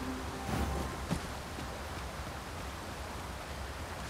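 A waterfall roars nearby.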